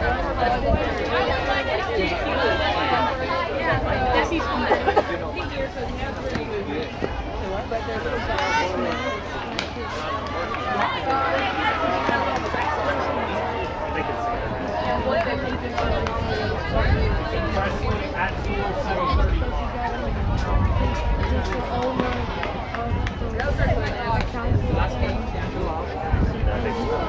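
Young girls and adults shout and cheer from around an outdoor field.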